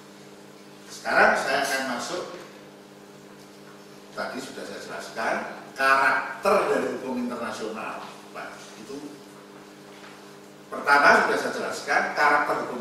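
An elderly man speaks animatedly into a microphone.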